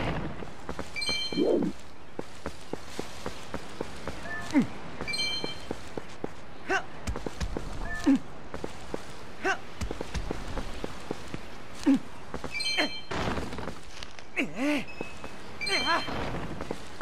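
A bright chime rings out a few times.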